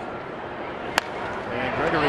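A baseball bat cracks against a ball.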